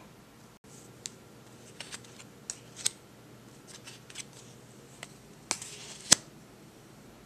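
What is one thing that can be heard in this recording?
Poker chips click and clack on a table.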